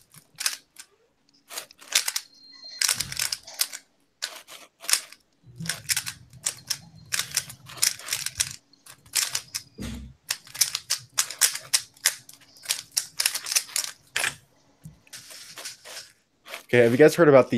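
Plastic puzzle pieces click and clack rapidly as a cube is turned.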